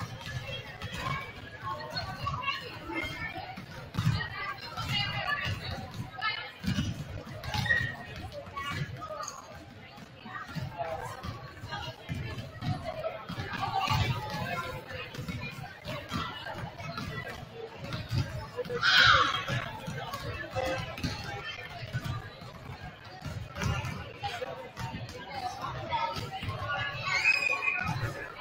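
Basketballs bounce on a wooden court, echoing in a large hall.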